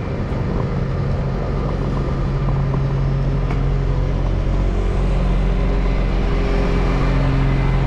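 A diesel garbage truck engine rumbles close by.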